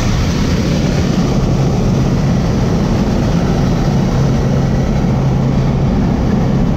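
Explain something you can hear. A small plane's engine drones loudly and steadily from close by.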